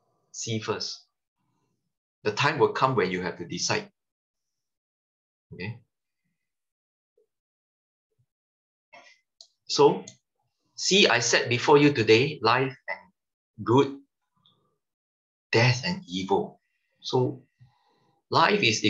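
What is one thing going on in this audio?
A man talks calmly over an online call, in short phrases with pauses.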